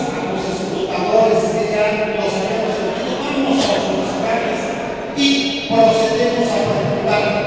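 A man speaks with animation into a microphone over loudspeakers in a large echoing hall.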